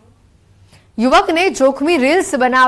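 A young woman speaks clearly into a microphone, as if reading out news.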